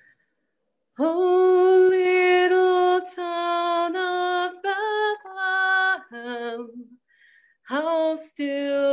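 A woman sings slowly held notes through an online call.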